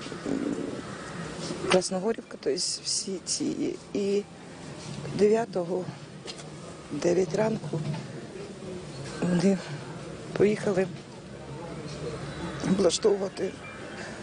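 A middle-aged woman speaks emotionally in halting phrases into a close microphone.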